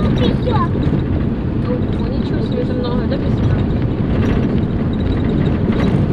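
Wind buffets loudly and steadily against the microphone outdoors.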